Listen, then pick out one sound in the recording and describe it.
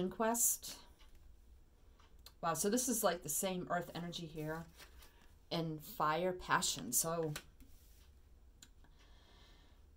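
Playing cards slide and tap on a tabletop.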